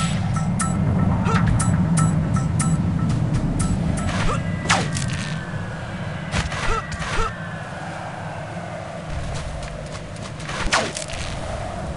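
Sharp web-shooting thwips snap repeatedly.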